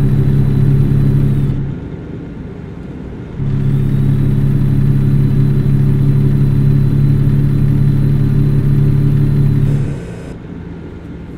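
Tyres roll on the road.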